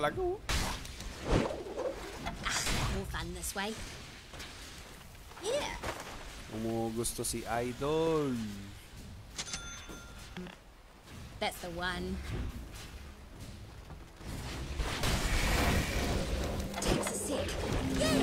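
Game spells and hits crackle and thump.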